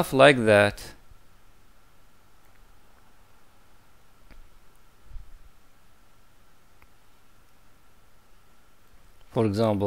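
A man speaks calmly into a headset microphone, in short bursts with long pauses.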